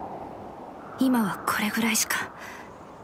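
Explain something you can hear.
A young woman speaks in a low, tense voice.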